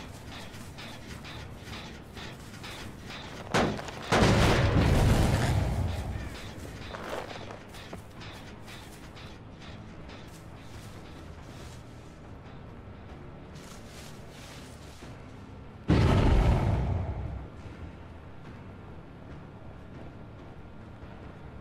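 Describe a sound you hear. Footsteps thud quickly and evenly through grass.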